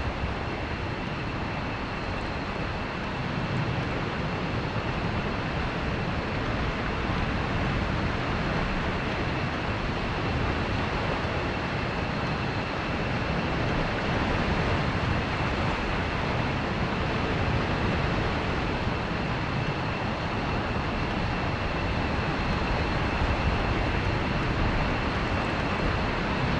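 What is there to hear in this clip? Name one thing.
A jet engine runs with a steady roar and high whine.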